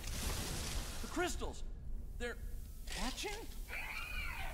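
A man speaks slowly, with hesitant wonder.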